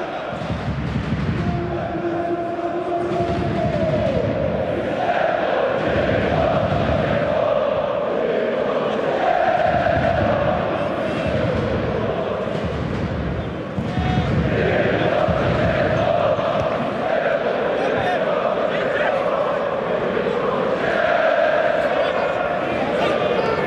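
A large stadium crowd chants and sings loudly throughout.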